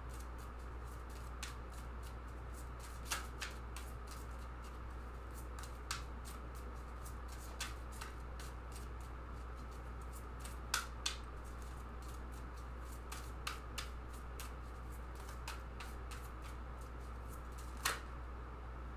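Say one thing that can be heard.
Playing cards flick and slap softly as they are shuffled by hand.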